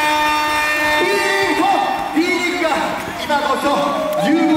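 A young man sings into a microphone over the music.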